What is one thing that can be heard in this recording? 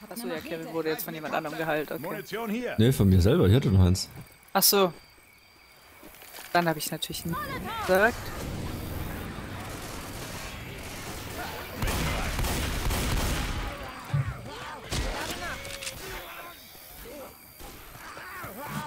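Shotgun blasts boom in quick bursts.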